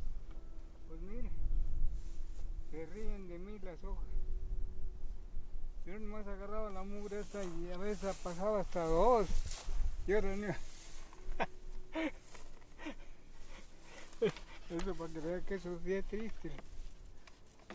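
An elderly man speaks calmly outdoors, close by.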